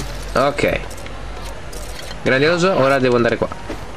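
Small coins tinkle and chime as they are picked up.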